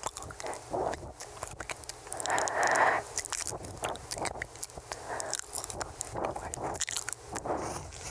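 Soft mouth clicks sound close to a microphone.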